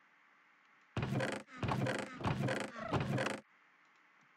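A wooden chest creaks open and thuds shut.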